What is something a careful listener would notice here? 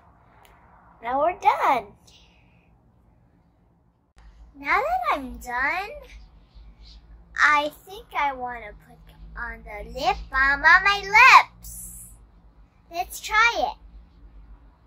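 A young girl talks with animation close to the microphone.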